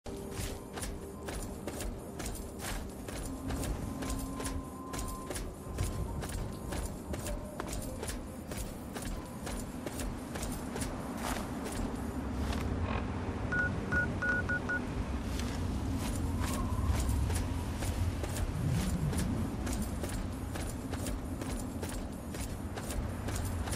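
Footsteps crunch steadily over gravel.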